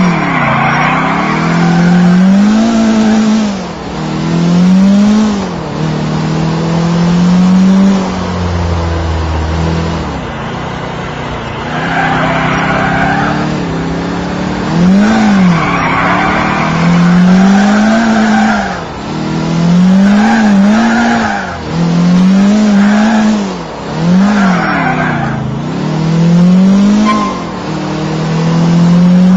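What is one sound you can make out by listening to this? A car engine revs up and down as the car drives and turns.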